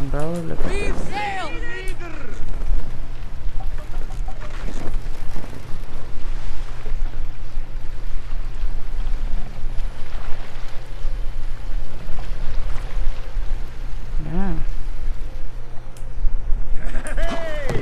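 Water laps and splashes against a wooden boat moving through the waves.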